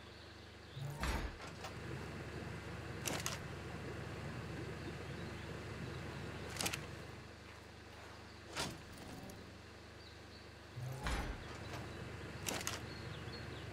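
Short interface clicks sound as menus open and close.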